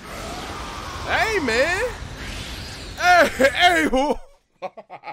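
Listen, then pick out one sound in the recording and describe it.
A young man shouts loudly with excitement close by.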